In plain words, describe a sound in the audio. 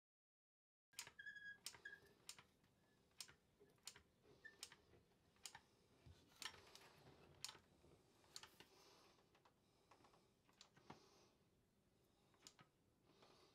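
A caulking gun clicks and ratchets sharply, again and again, close by.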